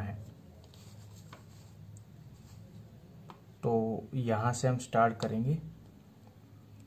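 A pen scratches lightly along a ruler on paper.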